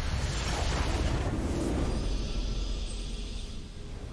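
A triumphant fanfare swells as the match ends.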